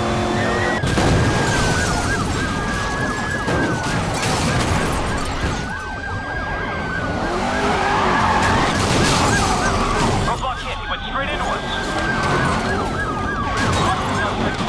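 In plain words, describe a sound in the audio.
Police sirens wail and sweep up and down.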